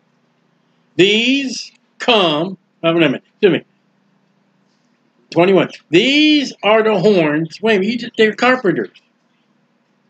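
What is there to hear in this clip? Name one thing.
A middle-aged man reads out slowly and calmly, close to a microphone, with pauses.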